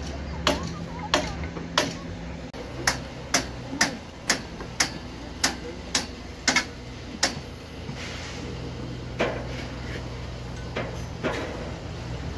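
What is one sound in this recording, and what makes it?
A trowel taps sharply on bricks at a steady pace.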